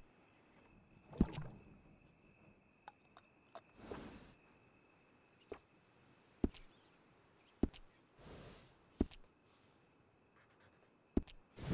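A horse snorts softly.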